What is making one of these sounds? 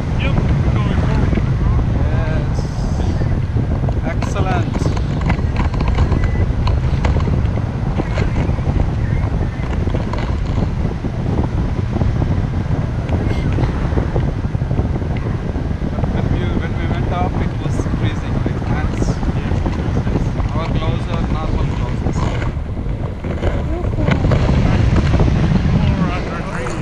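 A man talks nearby over the wind.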